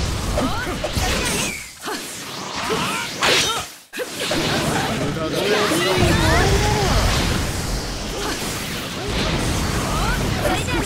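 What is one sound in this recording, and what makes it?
Fighters' attacks strike with loud magical bursts and impacts.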